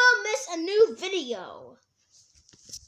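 A young boy speaks loudly and playfully close by.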